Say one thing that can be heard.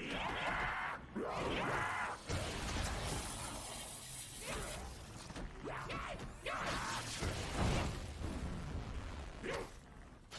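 Monsters snarl and growl close by.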